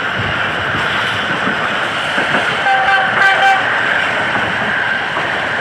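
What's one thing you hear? A passenger train rumbles along the rails, heard from on board.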